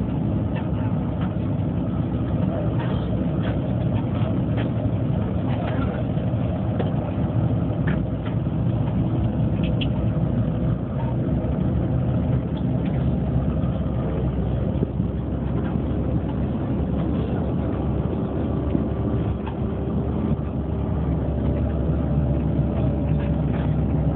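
Loose parts of a bus rattle and clatter as it moves.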